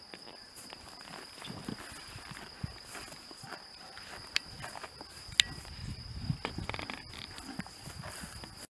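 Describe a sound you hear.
A horse tears and munches grass up close.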